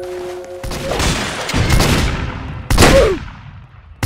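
A blade swishes and strikes in a game fight.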